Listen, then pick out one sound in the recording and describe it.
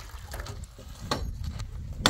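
Water pours from a plastic jug.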